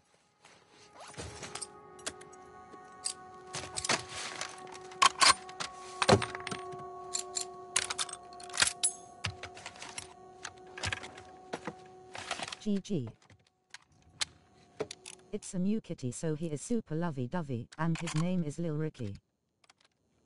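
Metal parts of a rifle click and clatter as they are handled and fitted.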